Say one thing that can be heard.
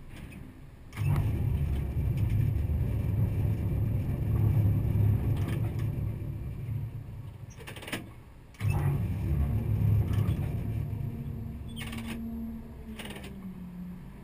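A crane's motor drones with a deep hum, starting and stopping.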